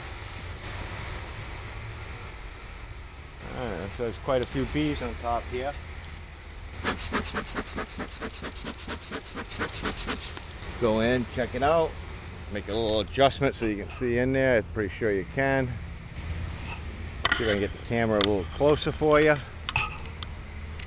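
Bees buzz softly around an open hive.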